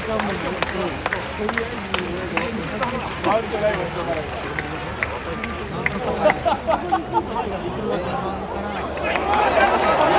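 A large stadium crowd murmurs and chatters.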